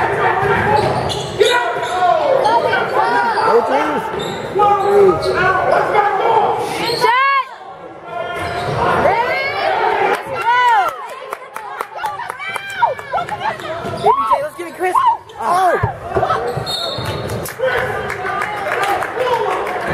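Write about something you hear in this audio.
Basketball sneakers squeak on a hardwood court in an echoing gym.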